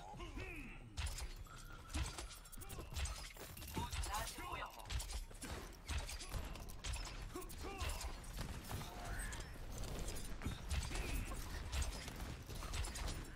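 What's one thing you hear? Rapid gunshots crack in short bursts.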